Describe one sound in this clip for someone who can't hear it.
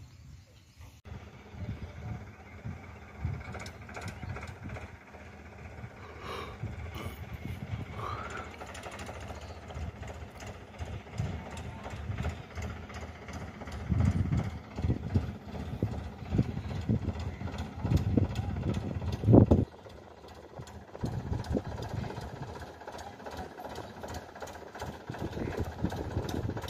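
A tractor engine rumbles as it approaches.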